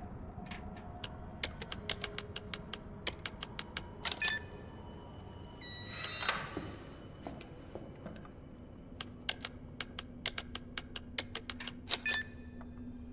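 Keypad buttons click in quick, short presses.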